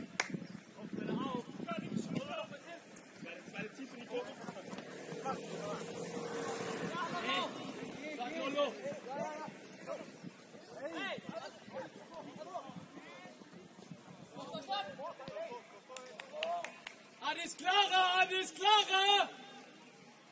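Young men shout to each other across an open field outdoors.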